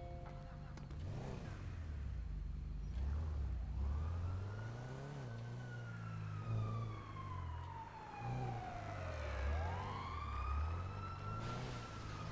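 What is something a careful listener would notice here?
A car engine revs and roars as the car speeds off.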